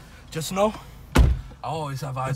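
A car door slams shut close by.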